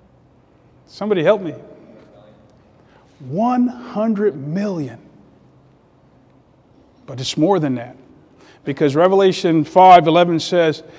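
A middle-aged man preaches with emphasis into a microphone, his voice ringing in a large room, with long pauses between phrases.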